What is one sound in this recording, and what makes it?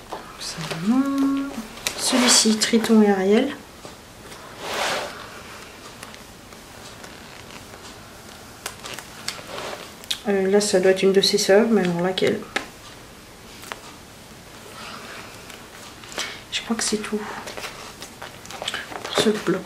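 Paper pages rustle and flap as they are turned.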